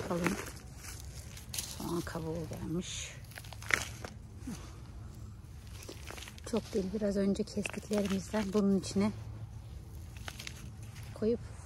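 Loose soil rustles as it is scooped by hand.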